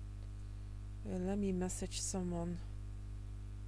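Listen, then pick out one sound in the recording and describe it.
A young woman speaks briefly and calmly into a nearby microphone.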